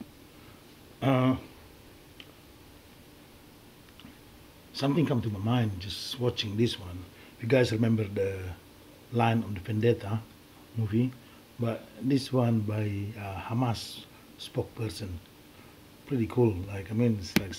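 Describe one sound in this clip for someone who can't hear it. A middle-aged man speaks with animation, close to the microphone.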